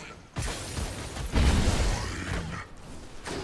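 A magic blast crackles and whooshes.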